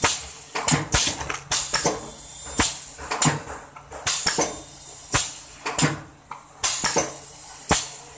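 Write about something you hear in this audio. A packaging machine clatters and hisses in a rapid, repeating rhythm.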